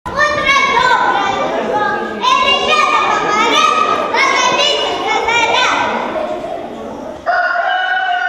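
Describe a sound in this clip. A young girl sings loudly in an echoing hall.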